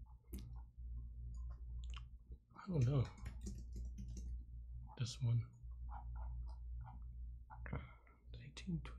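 A young man talks casually and close to a microphone.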